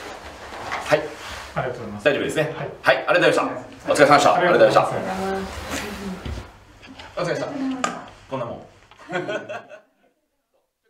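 A young woman speaks and laughs nearby.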